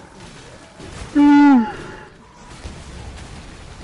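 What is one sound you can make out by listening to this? A loud blast bursts with a roar of fire.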